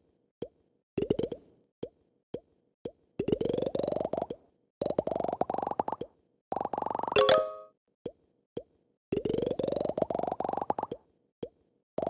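Rapid smashing clicks rise quickly in pitch as a game ball breaks through rings.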